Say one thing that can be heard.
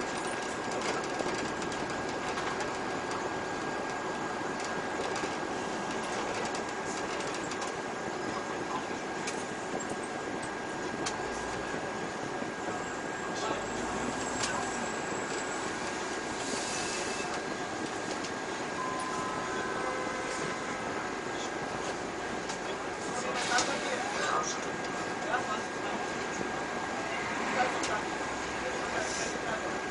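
A city bus drives along a street, heard from inside.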